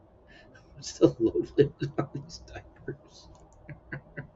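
An elderly man laughs.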